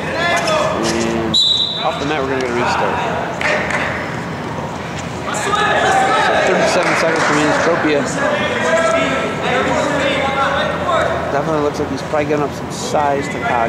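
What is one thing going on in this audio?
Spectators shout and call out in a large echoing hall.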